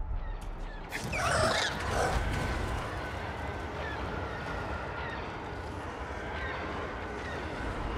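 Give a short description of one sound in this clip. A large winged creature screeches.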